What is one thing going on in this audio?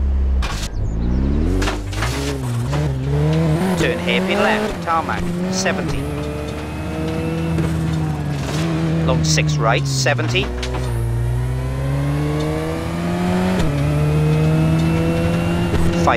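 A rally car engine revs hard, rising and falling as it shifts gears.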